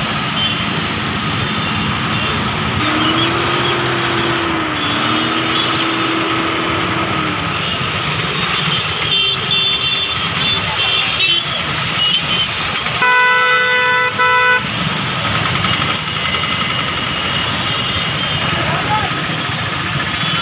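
Motorbikes and auto rickshaws rumble and putter through busy traffic.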